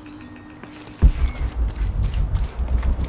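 Footsteps thud on a dirt floor.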